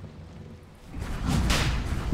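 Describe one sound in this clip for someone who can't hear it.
Game weapons clash in combat.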